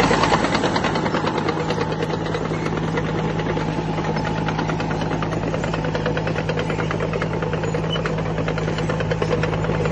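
A disc plough scrapes and churns through soil.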